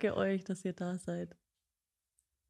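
A young woman speaks cheerfully and close into a microphone.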